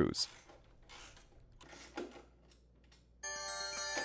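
A ratchet wrench clicks.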